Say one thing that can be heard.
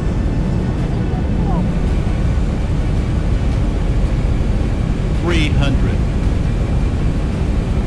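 A jet engine roars steadily in a deep, constant rumble.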